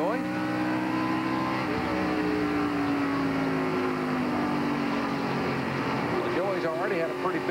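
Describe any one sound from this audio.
Other race car engines roar close by.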